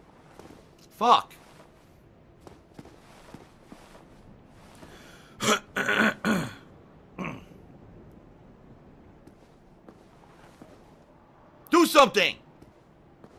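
A man speaks loudly in short bursts into a nearby microphone.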